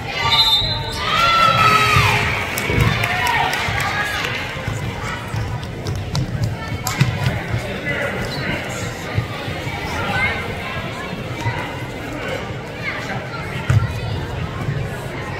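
Spectators cheer and call out in a large echoing gym.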